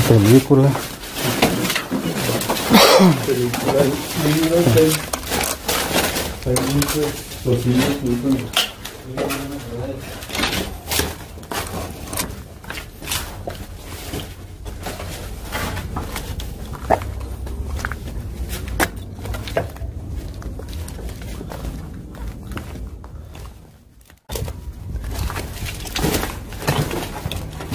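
Footsteps crunch over debris and rubble.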